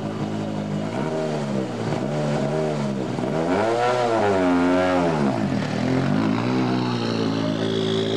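A rally car engine revs up and down several times.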